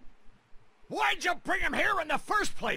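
A man answers in a tense voice.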